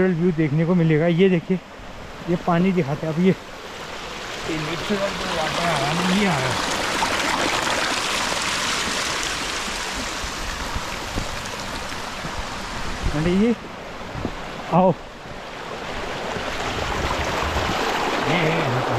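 A small stream splashes and gurgles over rocks close by.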